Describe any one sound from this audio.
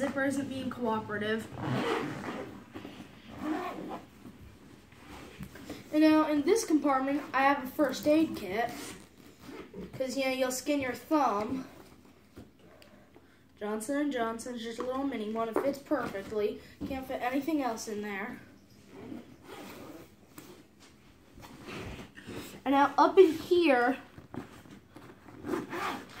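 A zipper rasps on a bag.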